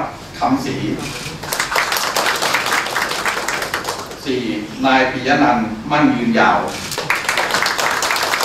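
A group of people clap their hands.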